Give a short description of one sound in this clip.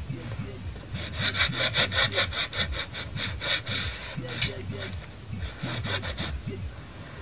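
A pencil scratches across paper.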